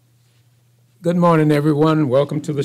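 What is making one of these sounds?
An elderly man speaks through a microphone with animation.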